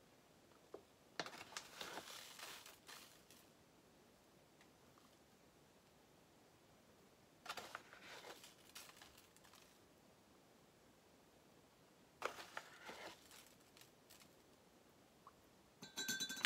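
A spoon scoops and clinks against a cup.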